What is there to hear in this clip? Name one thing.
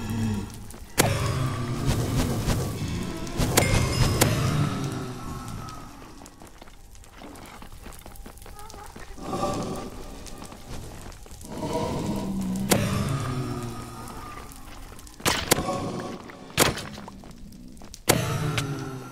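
Sharp sword strikes hit a creature several times.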